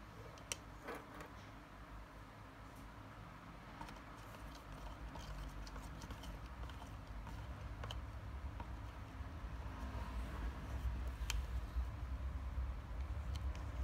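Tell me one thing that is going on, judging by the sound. A plastic stick scrapes and clinks against a plastic cup while stirring.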